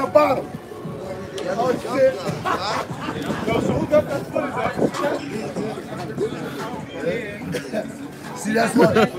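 Men talk with animation close by.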